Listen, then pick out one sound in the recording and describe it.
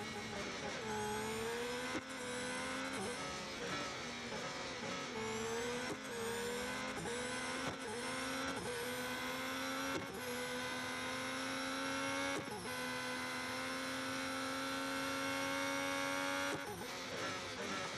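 A racing car engine screams at high revs, rising in pitch through each gear and dropping sharply at each gear change.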